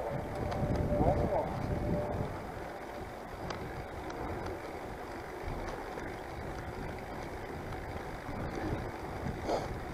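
Wind rushes and buffets against a microphone while riding outdoors.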